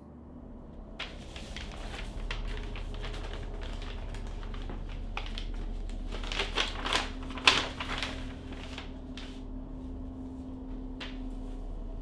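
Paper rustles and crinkles as an envelope is handled and opened.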